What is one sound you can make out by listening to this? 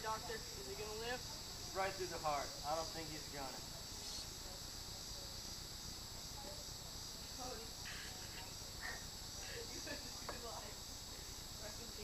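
Teenage boys talk and laugh nearby outdoors.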